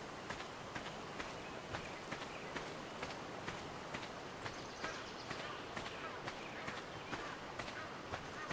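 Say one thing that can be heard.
Small waves lap gently at the shore.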